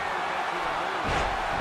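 A body slams onto a wrestling ring mat with a heavy thud.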